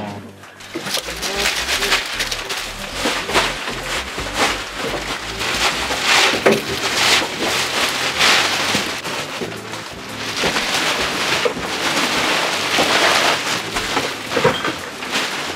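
Plastic bags rustle and crinkle.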